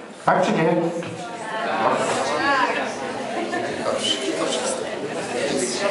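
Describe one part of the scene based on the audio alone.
A man speaks into a microphone over a loudspeaker in an echoing hall.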